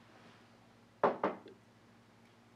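A cup knocks twice against a hard surface.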